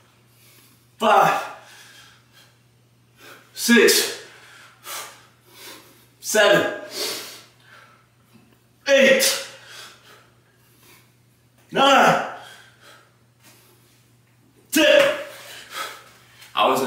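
A young man grunts and exhales sharply with each pull-up.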